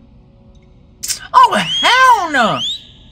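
A young man laughs and squeals loudly, close to a microphone.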